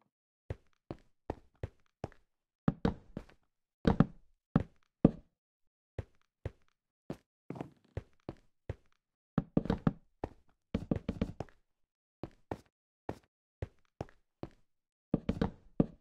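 Wooden blocks thud softly as they are placed one after another.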